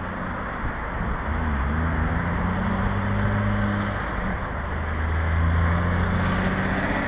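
A large truck engine rumbles nearby.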